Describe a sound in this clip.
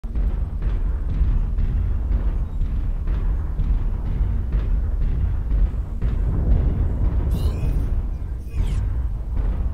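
Heavy mechanical footsteps thud in a steady rhythm.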